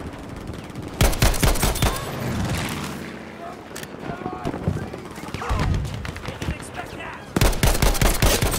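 Rapid gunfire crackles close by.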